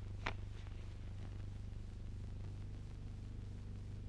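Paper rustles in a man's hands.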